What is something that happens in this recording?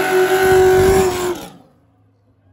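An engine roars loudly.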